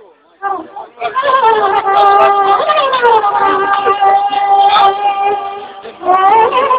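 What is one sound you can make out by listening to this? A horn blares loudly close by, holding long notes.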